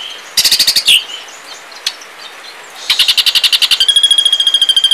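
A bird chatters harshly in rapid bursts, close by.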